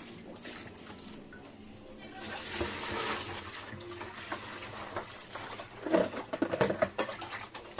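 Water splashes in a plastic bowl as hands rinse it.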